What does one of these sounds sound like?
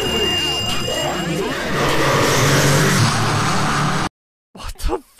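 Harsh, crackling noise roars loudly, then cuts off abruptly.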